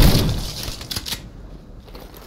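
A gun fires a loud blast that echoes away.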